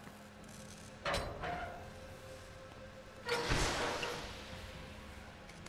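A heavy metal door clanks and grinds as it is forced open.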